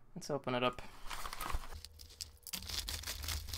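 A utility knife slices through a plastic mailing bag.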